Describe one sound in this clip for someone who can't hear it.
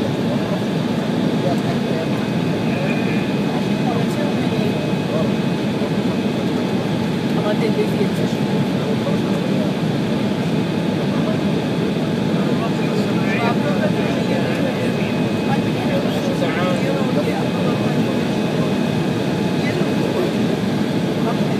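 A jet's engines roar steadily inside the cabin.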